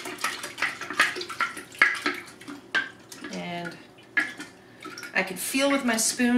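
Liquid sloshes gently inside a glass jar.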